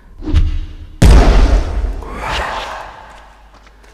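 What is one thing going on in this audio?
A muffled blast bursts, followed by a hissing puff.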